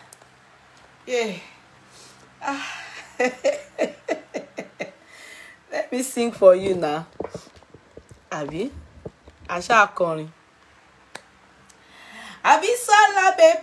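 A young woman talks and sings with animation close to a phone microphone.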